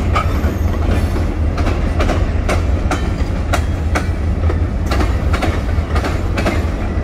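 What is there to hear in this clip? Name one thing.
Freight car wheels clack over rail joints.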